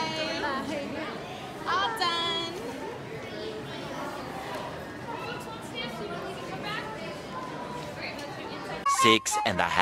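A woman talks close by in a large echoing hall.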